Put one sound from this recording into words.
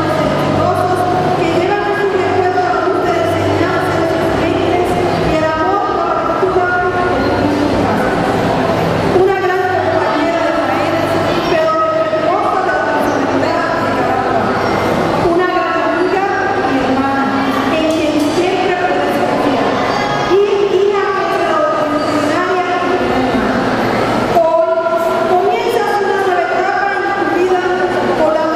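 A middle-aged woman sings through a microphone and loudspeakers.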